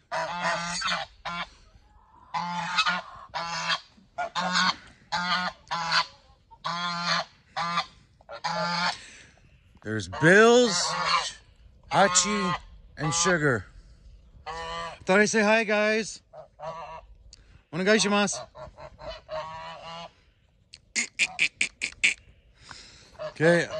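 Geese honk loudly and repeatedly close by.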